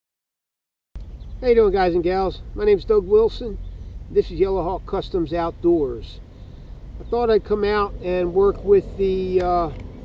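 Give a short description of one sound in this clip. A middle-aged man talks calmly and closely into a microphone outdoors.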